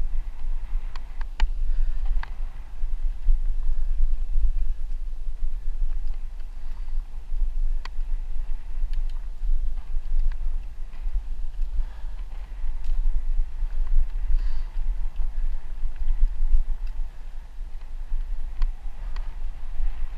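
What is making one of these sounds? A bicycle rattles with sharp clicks over bumps.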